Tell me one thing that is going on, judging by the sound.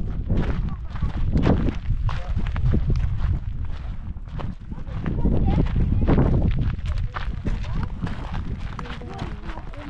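Wind gusts and rumbles across open ground outdoors.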